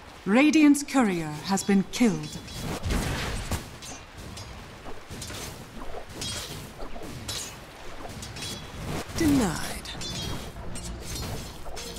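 Game fight sounds of clashing weapons and spell impacts come in bursts.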